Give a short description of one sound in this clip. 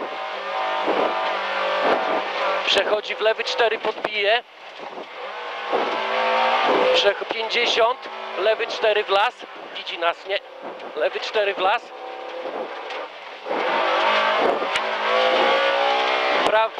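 A co-driver reads out pace notes rapidly through an intercom.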